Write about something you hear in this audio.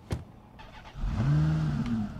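A car engine starts and idles with a low rumble.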